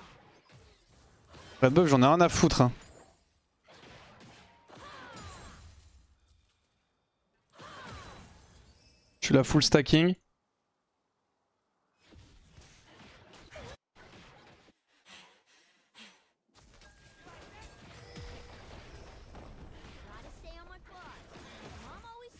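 Fighting sound effects from a video game clash and whoosh.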